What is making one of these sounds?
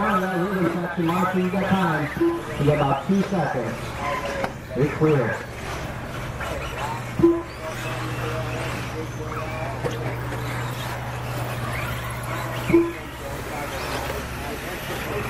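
Small electric motors of model cars whine and rise and fall in pitch as the cars race by.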